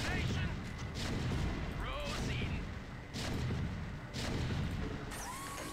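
Cannons fire with sharp blasts.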